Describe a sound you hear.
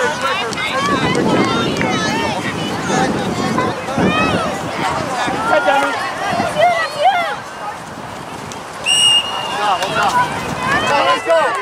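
Men and women on the sideline shout and call out excitedly outdoors.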